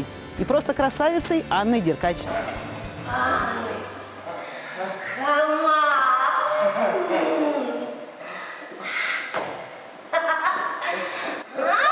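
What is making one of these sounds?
A young woman laughs loudly and playfully.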